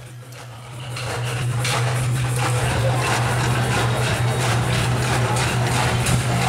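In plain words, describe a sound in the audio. Metal prayer wheels rumble and rattle as a hand spins them one after another.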